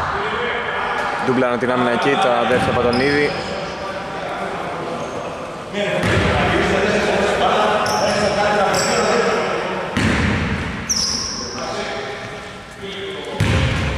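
Men call out to each other across an echoing gym.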